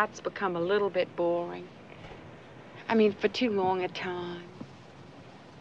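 A middle-aged woman speaks emphatically, close by.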